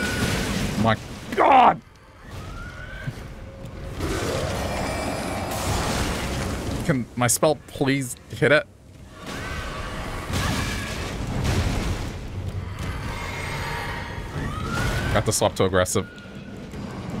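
A monster shrieks loudly in harsh bursts.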